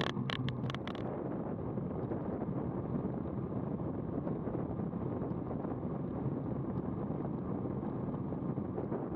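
Bicycle tyres hum on smooth asphalt.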